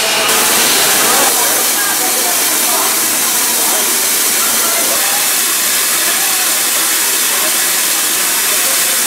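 A steam locomotive hisses loudly as steam escapes close by.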